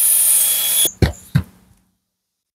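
A power tool is set down with a couple of dull knocks.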